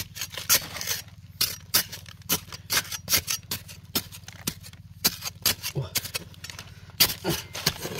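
A metal blade scrapes and chips at dry, crumbly earth.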